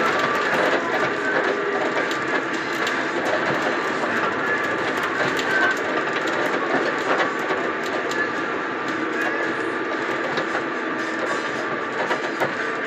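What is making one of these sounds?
Loose fittings inside a bus rattle and click over bumps.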